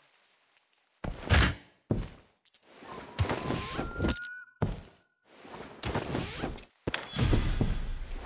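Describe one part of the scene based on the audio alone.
Footsteps thud across a floor indoors.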